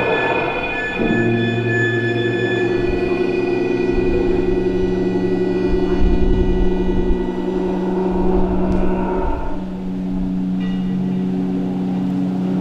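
Music with long held tones plays over loudspeakers in a large hall.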